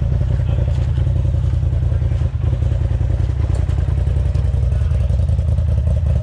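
A dirt bike engine pulses steadily at close range.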